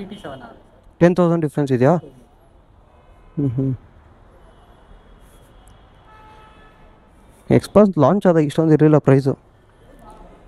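A man speaks close by, calmly explaining.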